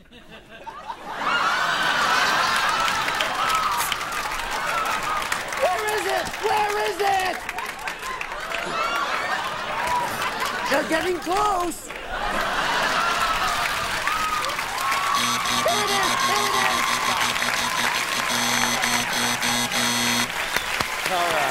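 A large studio audience laughs loudly and cheers.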